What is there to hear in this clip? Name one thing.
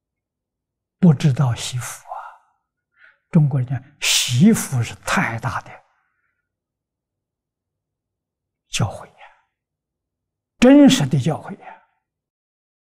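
An elderly man speaks calmly and warmly, close to a microphone, with pauses.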